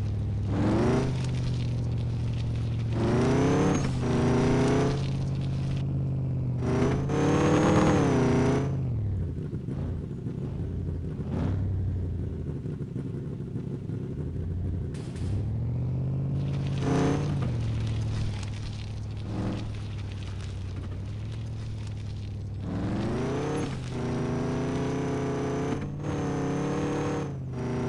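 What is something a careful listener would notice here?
A truck engine roars and revs up and down in bursts.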